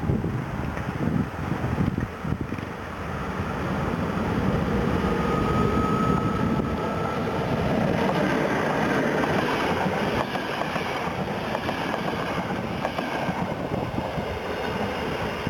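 A passenger train hauled by an electric locomotive approaches and passes close by.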